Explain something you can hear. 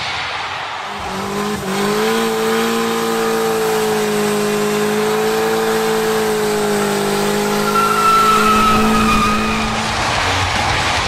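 A car engine roars steadily at high revs.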